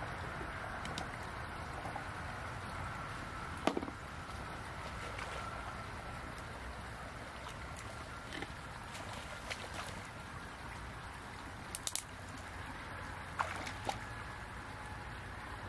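Water splashes softly in a shallow stream.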